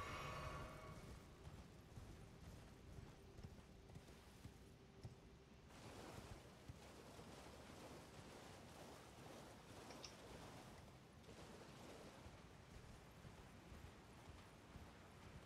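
A horse gallops with hooves thudding on the ground.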